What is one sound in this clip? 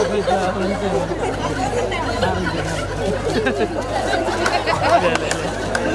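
A crowd of men and women chatters and shouts outdoors.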